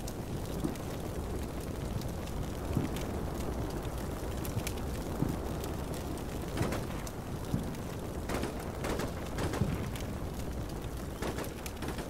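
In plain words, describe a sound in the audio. Distant gunfire crackles in short bursts.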